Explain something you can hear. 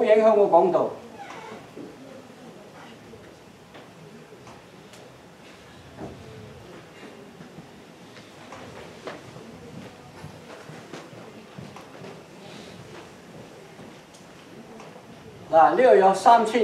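An elderly man speaks with animation, further off and quieter.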